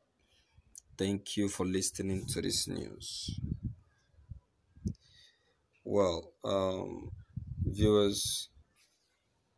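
A man speaks with animation into microphones.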